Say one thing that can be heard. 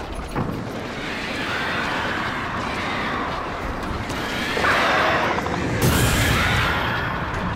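A large flock of birds flaps and shrieks loudly.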